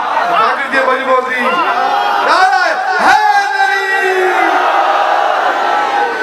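A large crowd of men chants together.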